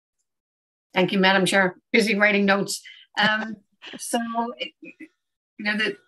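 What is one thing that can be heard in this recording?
An elderly woman speaks cheerfully over an online call.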